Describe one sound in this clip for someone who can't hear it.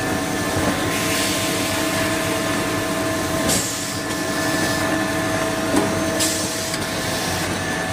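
Machine parts clack and hiss now and then.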